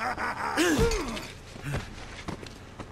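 A man groans and grunts in pain.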